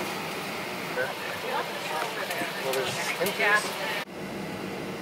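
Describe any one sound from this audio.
A jet airliner's cabin hums steadily.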